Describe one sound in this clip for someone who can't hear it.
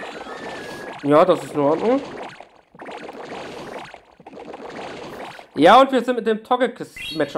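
A young man speaks with animation, close to a headset microphone.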